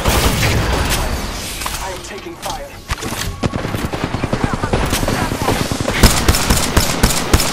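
Gunfire cracks.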